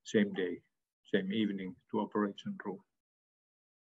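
A man speaks calmly through a microphone in an online call.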